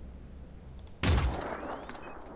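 A heavy gun fires a single loud blast.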